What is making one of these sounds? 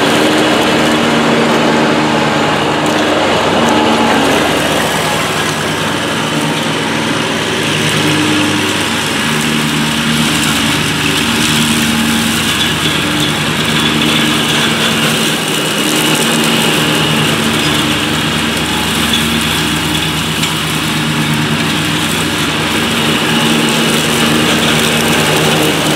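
A zero-turn ride-on mower's engine runs under load.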